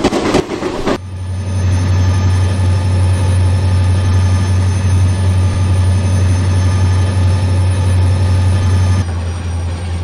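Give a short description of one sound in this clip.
A diesel locomotive engine drones steadily as it passes.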